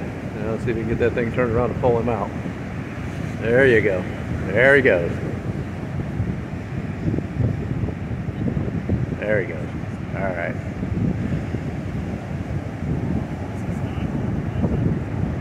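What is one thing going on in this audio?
Waves wash onto the shore nearby.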